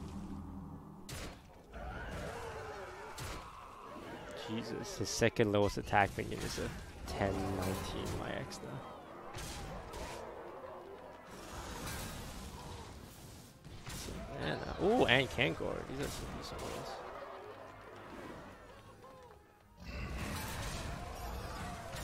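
Game sound effects clash and thump as cards attack.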